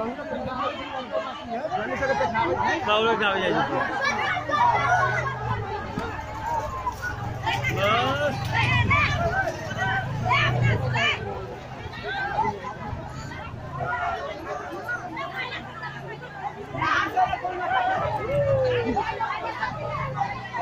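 A crowd of men and women shouts and calls out in the open air.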